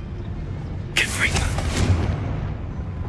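A fiery spell crackles and whooshes through the air.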